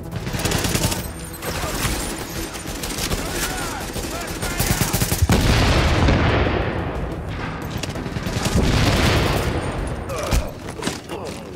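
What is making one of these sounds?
Rapid gunfire rings out in bursts.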